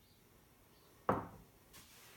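A glass is set down on a wooden table with a knock.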